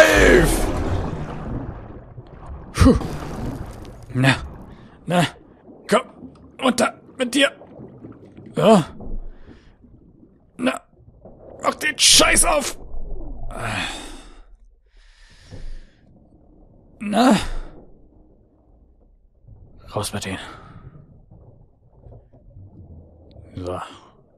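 Air bubbles gurgle and rise underwater in short bursts.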